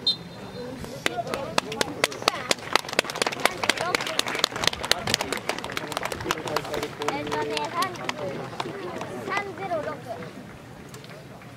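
Spectators clap and applaud.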